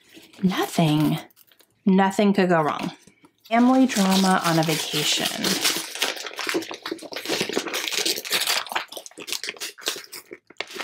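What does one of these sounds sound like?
Wrapping paper rustles and crinkles.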